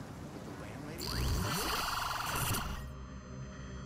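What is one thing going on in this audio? Electronic static crackles and hisses briefly.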